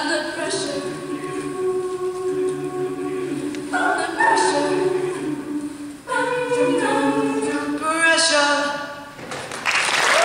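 A choir sings in harmony in a large hall.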